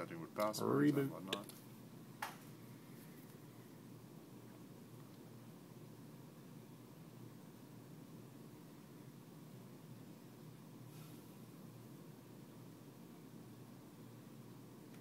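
A laptop fan hums softly and steadily.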